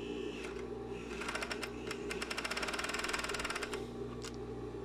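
A sewing machine whirs rapidly in a short burst.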